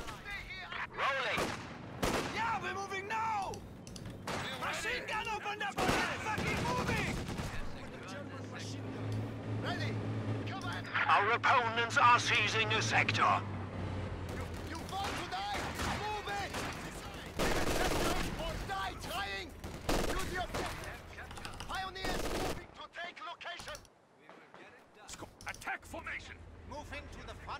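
Gunfire and explosions crackle from a battle.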